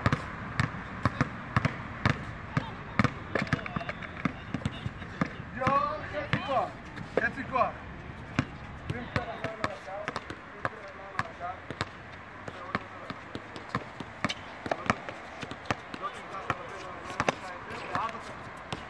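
A basketball bounces rapidly on a hard outdoor court.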